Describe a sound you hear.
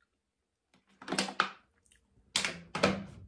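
A young woman gulps water loudly, close by.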